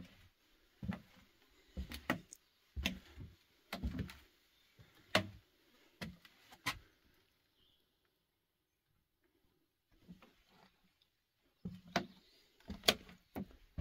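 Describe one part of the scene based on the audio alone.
Footsteps thud on hollow wooden boards.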